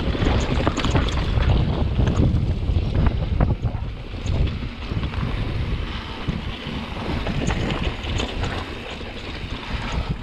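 Bicycle tyres crunch and rattle over rough rock and gravel.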